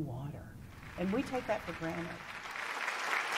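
A middle-aged woman speaks calmly close to a microphone.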